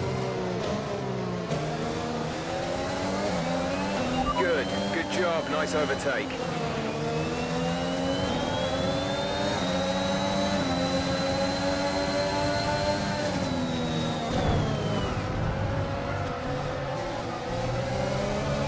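A racing car engine screams close by, rising and falling in pitch as it shifts gears.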